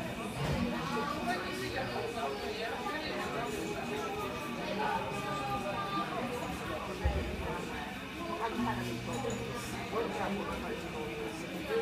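Many men and women chatter at once all around, close by.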